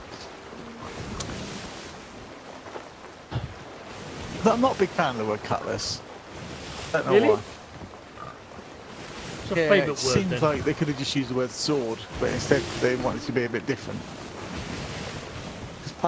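Ocean waves wash and roll steadily.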